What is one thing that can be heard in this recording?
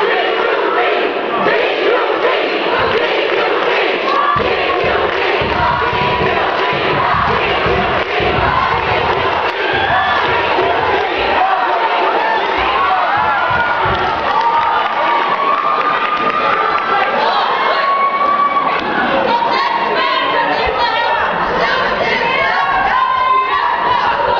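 A group of boys sings together on a stage, heard from the audience in a hall.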